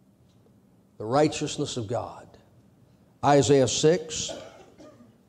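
A middle-aged man speaks earnestly into a microphone in short bursts.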